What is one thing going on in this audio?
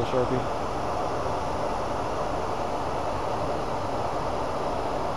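Abrasive paper rubs against a spinning metal rod with a steady hiss.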